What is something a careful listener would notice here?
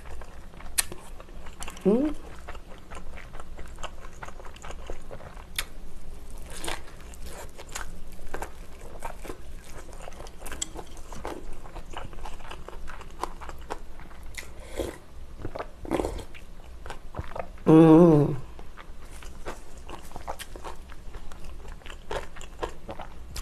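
A young woman chews and crunches food close up.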